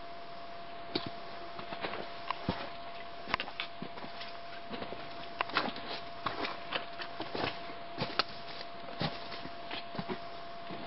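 Footsteps crunch on loose stones and dry leaves.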